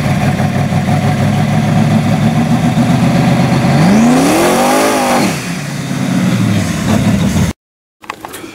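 A pickup truck's engine roars loudly as the truck drives up and speeds past.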